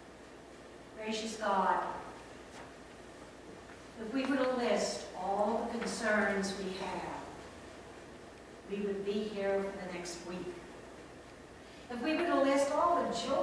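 An elderly woman speaks with animation through a microphone in an echoing room.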